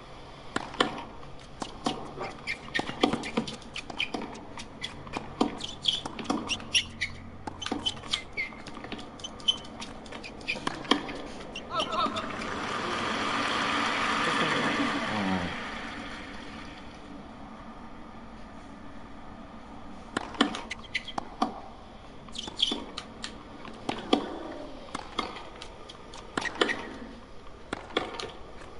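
Tennis rackets strike a ball with sharp pops, back and forth.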